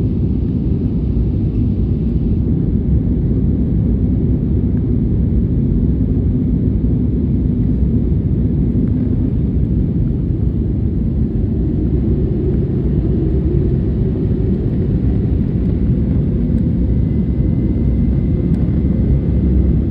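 Jet engines roar with a steady low rumble.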